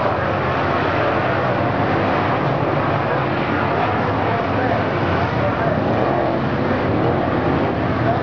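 Race car engines roar loudly as the cars speed past.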